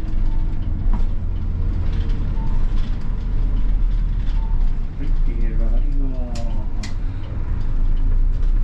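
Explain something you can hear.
A bus engine hums low and steady from inside the cabin.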